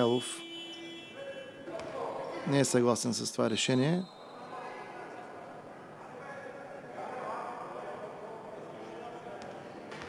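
A basketball bounces repeatedly on a wooden floor in an echoing hall.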